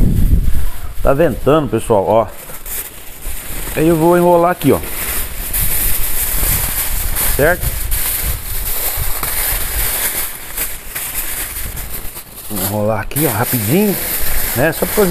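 Foil crinkles and rustles as it is handled and pressed.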